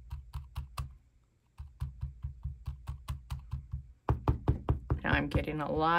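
A sponge dabs rapidly on paper with soft, quick taps.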